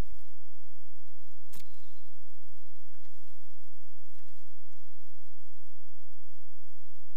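A short digital whoosh plays.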